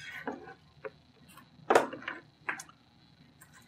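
Plastic bricks clatter as a hand sorts through them.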